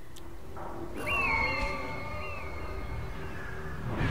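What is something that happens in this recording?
An eagle screeches.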